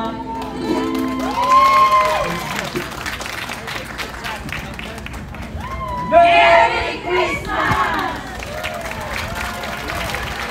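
Women sing together through loudspeakers outdoors.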